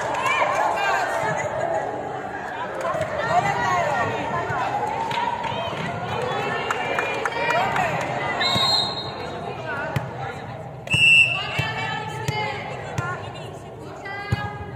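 Many young voices chatter and call out throughout a large echoing hall.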